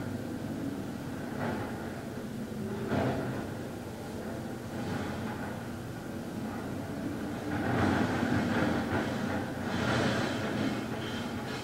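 A man speaks slowly and calmly, close by.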